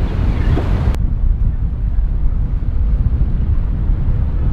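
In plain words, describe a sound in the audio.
A motorboat engine drones as the boat speeds past.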